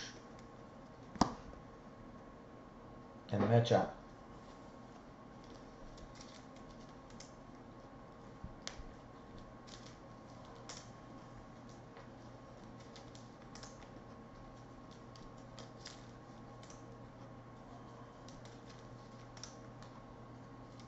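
Cards rustle and flick as hands handle them.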